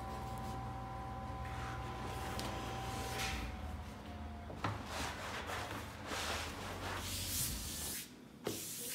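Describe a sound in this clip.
A large sheet of leather rustles and flaps as it is unrolled.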